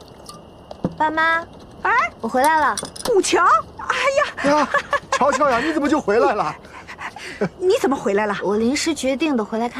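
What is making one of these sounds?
A young woman speaks brightly.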